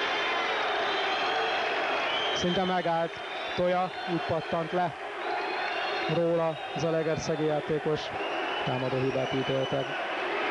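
Several men argue loudly with one another close by.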